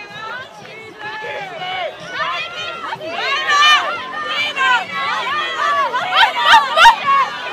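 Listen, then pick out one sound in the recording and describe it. Young women cheer and shout excitedly close by.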